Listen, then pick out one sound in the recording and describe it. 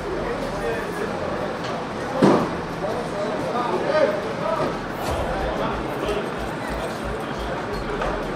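Men talk in low voices nearby.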